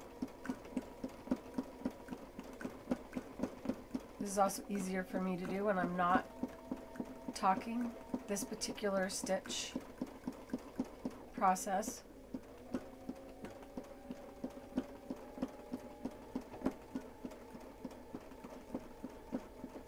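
An embroidery machine needle stitches with a fast, steady tapping and a hum.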